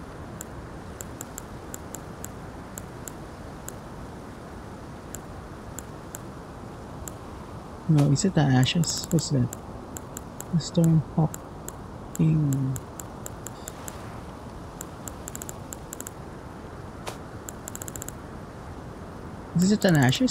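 Soft menu clicks tick as items are scrolled through.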